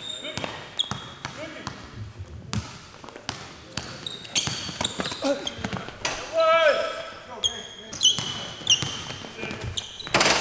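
A basketball bounces on a hard wooden floor in a large echoing hall.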